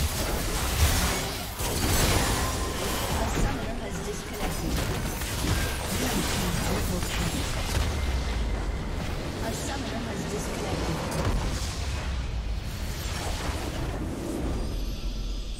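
Magic blasts and weapon hits crash rapidly in a game battle.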